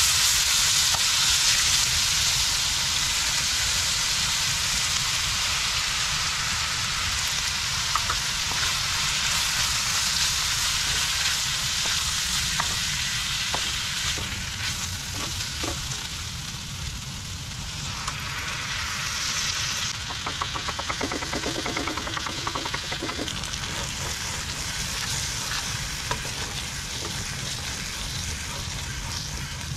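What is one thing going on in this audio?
A wooden spatula scrapes and knocks in a pan.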